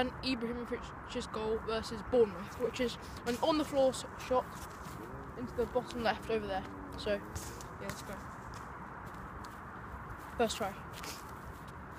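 A boy speaks close by, with animation.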